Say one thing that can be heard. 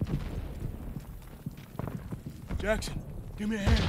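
Footsteps crunch on rough, stony ground.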